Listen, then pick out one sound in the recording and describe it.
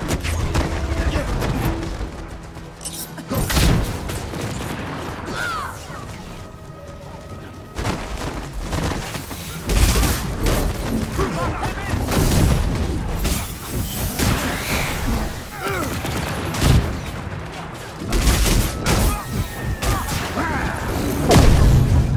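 Energy blasts and weapon strikes crash and zap repeatedly in a fight.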